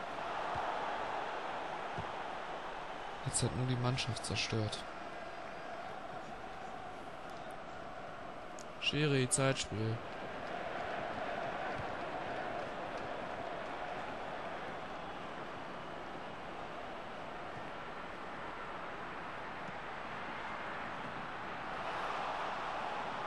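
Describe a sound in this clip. A stadium crowd roars steadily in the distance.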